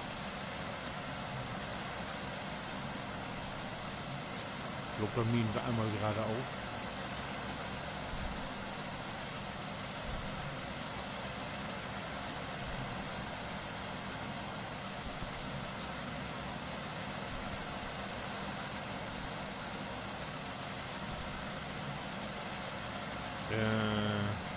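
A combine harvester engine drones steadily as it cuts through grain.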